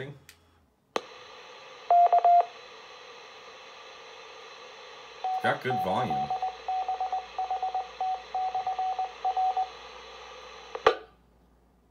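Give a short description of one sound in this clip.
A radio hisses steadily with static, then cuts off.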